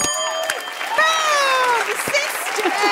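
Two women laugh and cheer excitedly.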